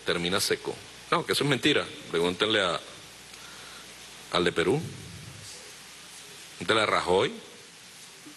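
A middle-aged man speaks forcefully into a microphone, in short bursts with pauses.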